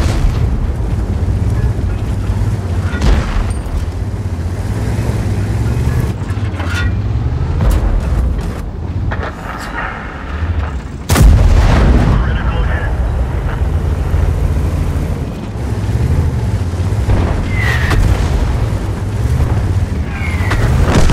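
A heavy tank engine rumbles and clanks steadily.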